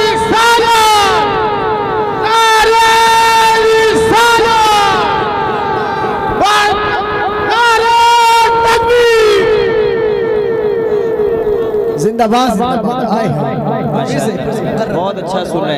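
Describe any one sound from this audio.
A young man chants melodically into a microphone over a loudspeaker, with heavy echo.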